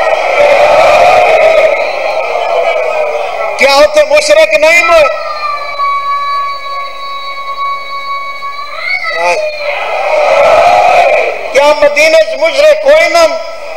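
A man chants loudly and with feeling into a microphone, holding long drawn-out notes.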